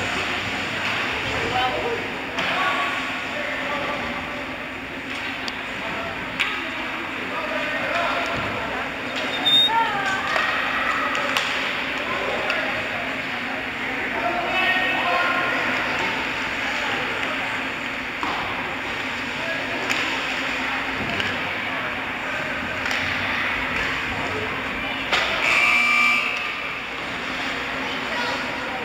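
Spectators chatter nearby in a large echoing rink.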